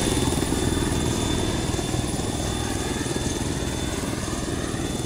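A helicopter's rotor thumps loudly and steadily close by.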